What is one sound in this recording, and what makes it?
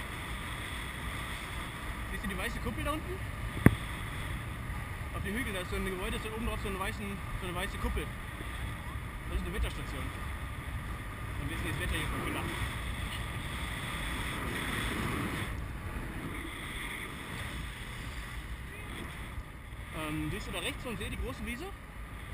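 Wind rushes and buffets loudly past the microphone outdoors.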